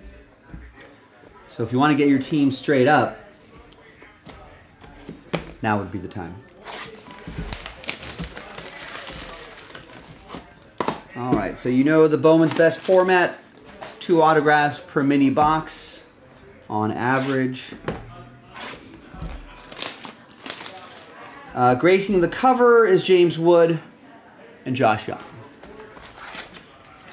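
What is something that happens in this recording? Cardboard boxes rustle and scrape as they are handled.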